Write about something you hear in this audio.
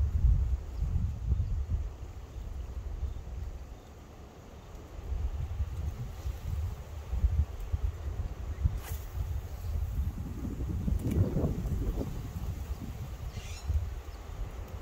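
Wind rumbles against the microphone outdoors.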